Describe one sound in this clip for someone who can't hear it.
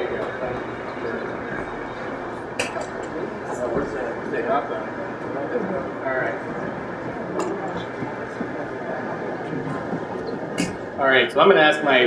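A crowd murmurs and chatters in a room.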